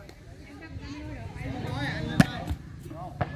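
A hand smacks a volleyball.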